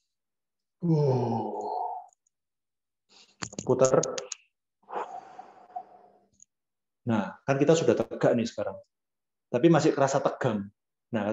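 A young man talks calmly and close by, in short bursts.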